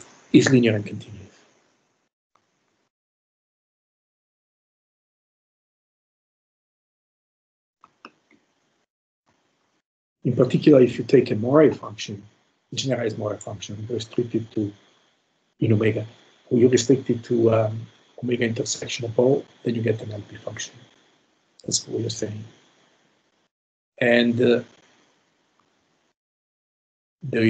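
A man speaks calmly, lecturing, heard through an online call.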